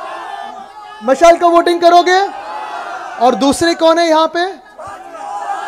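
A young man speaks forcefully into a microphone through loudspeakers, echoing outdoors.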